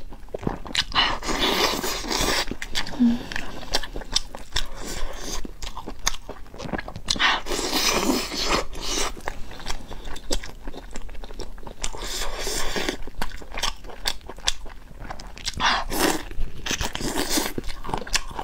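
A young woman bites into crispy meat with a crunch.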